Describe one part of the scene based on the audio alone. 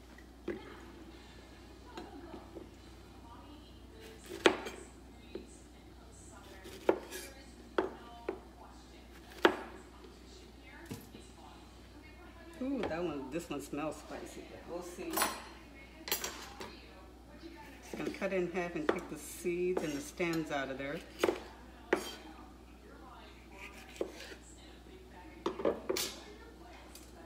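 A knife chops on a wooden cutting board with sharp knocks.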